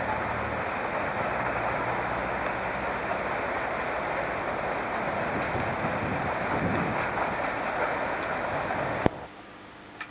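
A train rolls away along the track and fades.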